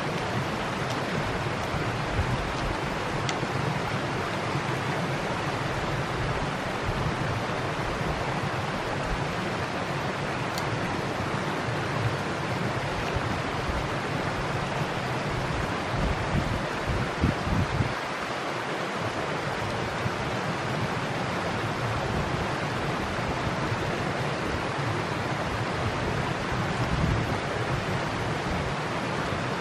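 A small stream trickles and gurgles steadily.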